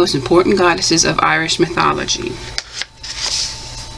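A paper page is turned with a soft rustle.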